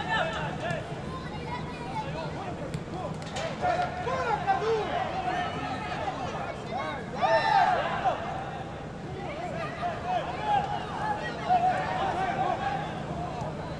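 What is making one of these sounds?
A small crowd murmurs and calls out in an open-air stadium.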